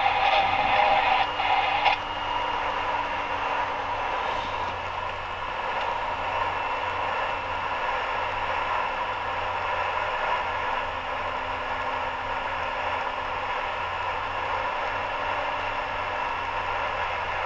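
Tyres roar on a snowy road.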